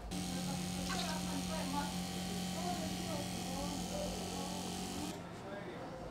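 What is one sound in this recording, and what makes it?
Milk pours in a thick stream and splashes into a tank.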